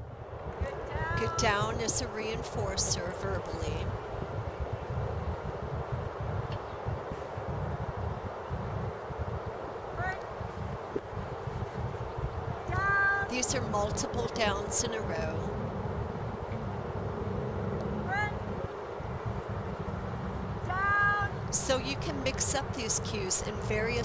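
A woman calls out in a high, cheerful voice nearby.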